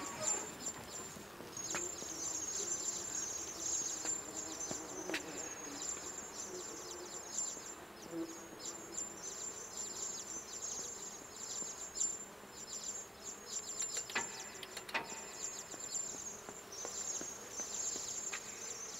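A man talks quietly into a microphone close by.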